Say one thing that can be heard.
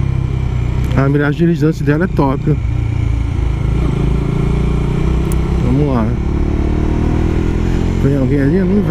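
A motorcycle engine revs up and down through gear changes.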